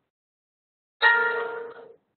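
A computer alert chime rings once and fades.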